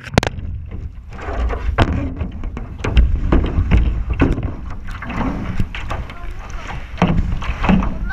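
A kayak paddle dips and splashes in the water.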